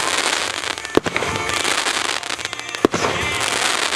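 Fireworks explode with sharp, loud bangs.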